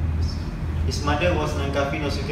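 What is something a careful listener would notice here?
A young man speaks calmly into a microphone, heard through a loudspeaker in a room.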